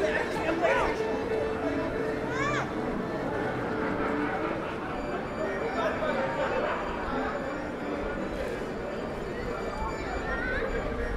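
Many men and women murmur and chat at a distance outdoors.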